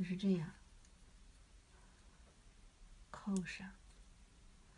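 A woman speaks briefly and close by.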